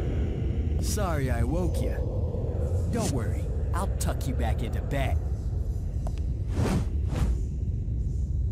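A young man speaks with confidence.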